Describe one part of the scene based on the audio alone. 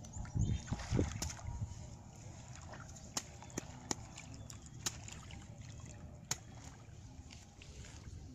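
A hoe scrapes and chops into wet mud.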